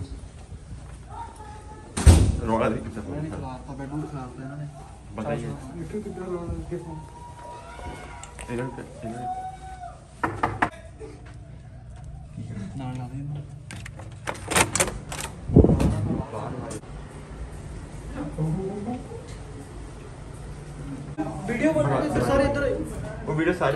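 Young men talk with animation nearby.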